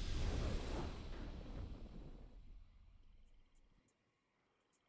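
A deep, booming victory fanfare swells and slowly fades away.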